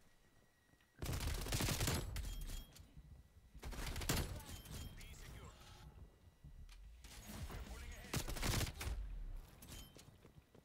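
Bursts of rapid gunfire ring out loudly.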